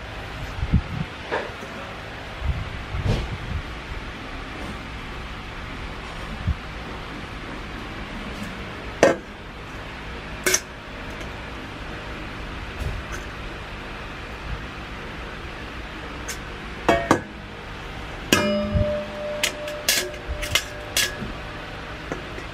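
Metal bowls clink and clatter as they are handled.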